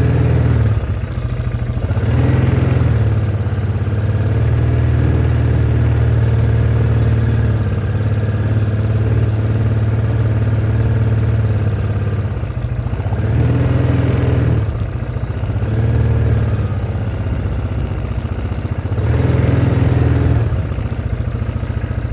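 A vehicle engine rumbles steadily up close, rising and falling in loudness.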